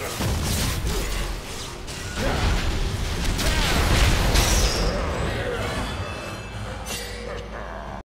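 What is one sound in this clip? Game spell effects crackle and whoosh in a fast fight.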